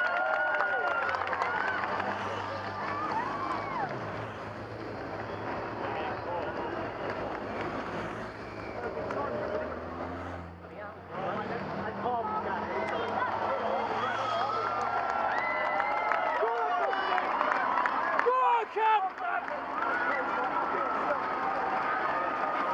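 Bicycles whir past in a large group.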